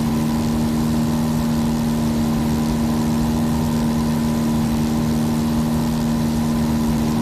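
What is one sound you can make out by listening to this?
An aircraft engine drones steadily and loudly.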